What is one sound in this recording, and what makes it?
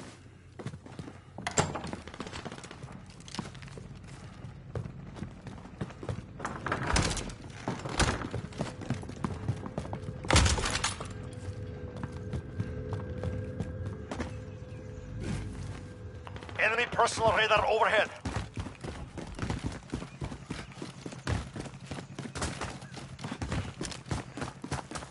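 Footsteps thud and scuff on hard floors.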